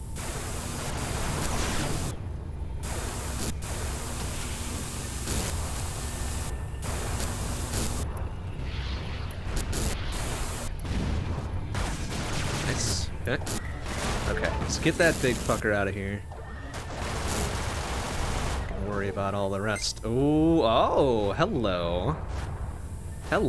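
Laser blasts fire rapidly in a game.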